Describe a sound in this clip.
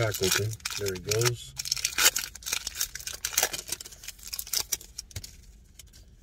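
Plastic wrappers crinkle and rustle in a man's hands.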